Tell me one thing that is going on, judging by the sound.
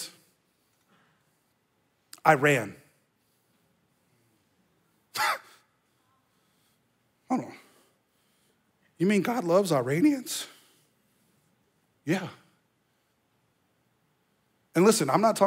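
A man speaks calmly in short phrases with pauses, close to a microphone.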